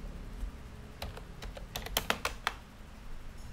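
Keys clatter in a quick burst of typing.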